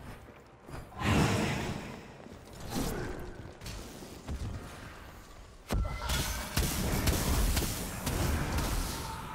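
Sharp fighting effects clash and whoosh in a game.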